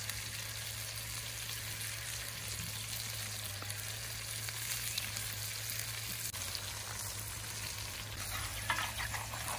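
Food sizzles in a pan over a fire.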